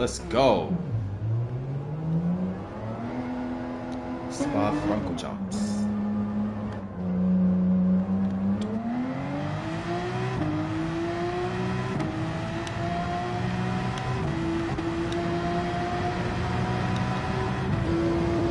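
A race car engine revs, its pitch rising and dropping as it shifts gears.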